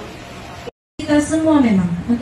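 A woman speaks in a slow, drawn-out, sing-song voice.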